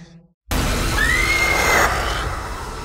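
A young woman screams in terror close by.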